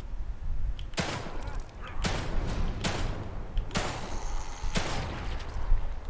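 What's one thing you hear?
Pistol shots ring out one after another, with a short echo after each.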